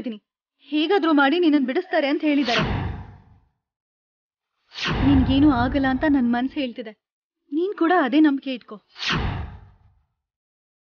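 A young woman speaks pleadingly, close by.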